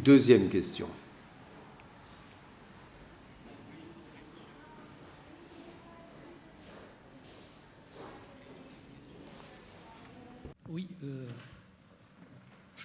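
An elderly man speaks faintly, away from a microphone.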